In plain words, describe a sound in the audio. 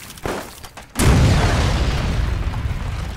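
A loud hiss of gas bursts out and slowly fades.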